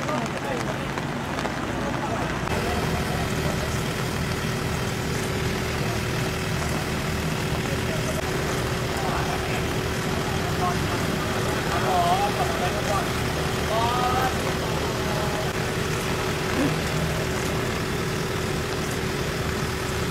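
Traffic hums in the distance.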